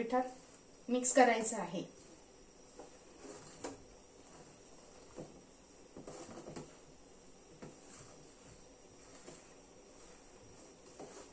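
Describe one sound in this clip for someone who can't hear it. Hands knead soft dough in a metal bowl.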